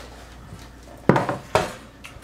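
A kitchen scale is set down on a wooden board with a thud.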